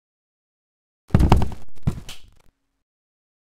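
A door swings open and bangs shut.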